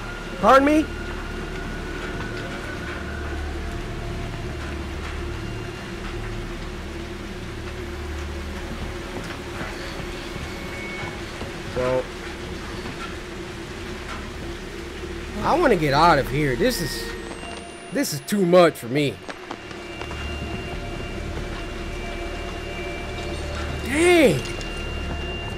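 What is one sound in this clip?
A man speaks and exclaims loudly into a microphone, close up.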